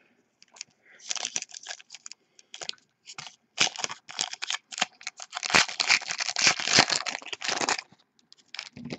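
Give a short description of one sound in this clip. A foil card pack crinkles and rustles in someone's hands.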